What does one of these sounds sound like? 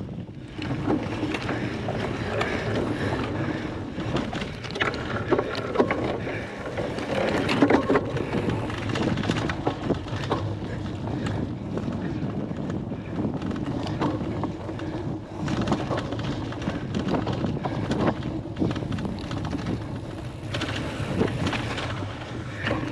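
Bicycle tyres roll and squelch over muddy grass.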